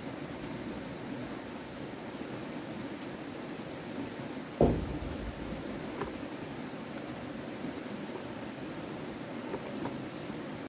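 Small hands splash water in a bucket.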